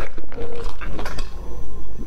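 A young woman gulps a drink.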